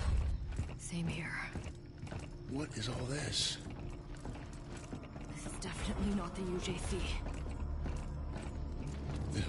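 Heavy armoured footsteps thud on a hard floor.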